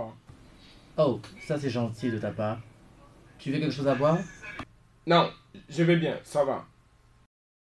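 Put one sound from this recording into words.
A man speaks calmly and closely.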